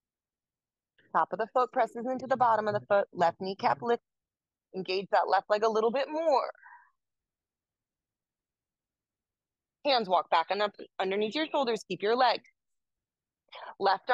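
A woman speaks calmly into a close microphone, pausing between phrases.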